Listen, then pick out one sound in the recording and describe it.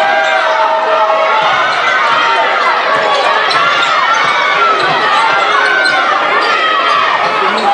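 Sneakers squeak sharply on a hardwood court, again and again.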